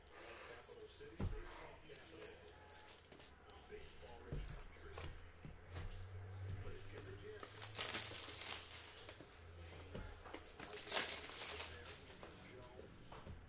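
Plastic wrappers crinkle and rustle as a man handles card packs.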